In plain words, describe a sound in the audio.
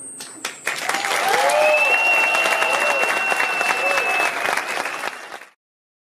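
A large audience applauds and cheers loudly in a big hall.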